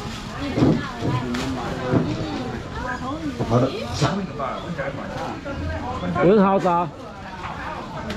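Plastic bags rustle close by.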